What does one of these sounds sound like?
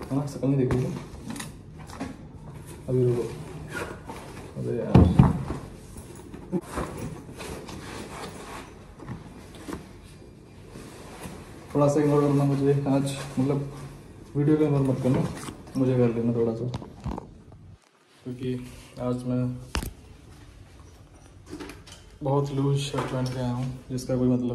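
A young man talks close by, casually and with animation.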